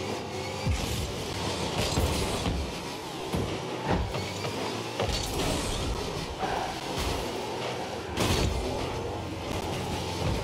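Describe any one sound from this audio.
A game car engine hums and roars steadily.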